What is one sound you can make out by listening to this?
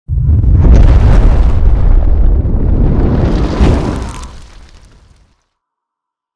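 A deep fiery whoosh roars and then fades away.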